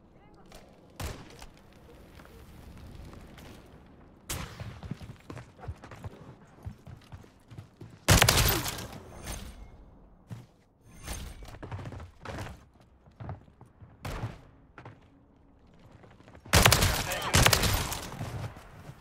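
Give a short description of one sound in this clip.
A rifle fires loud, sharp shots that echo briefly.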